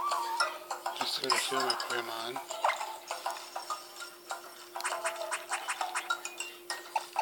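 Game music plays softly from a small speaker.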